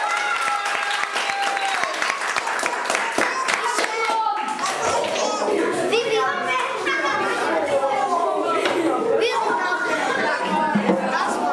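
Children's feet shuffle and stamp on the floor.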